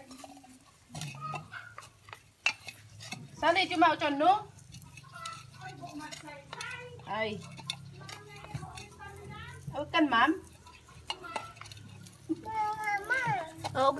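Ceramic pots knock and clink against each other.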